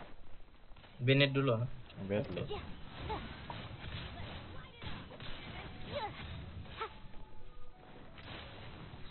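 Magic blasts and sword strikes crackle and thud in a video game fight.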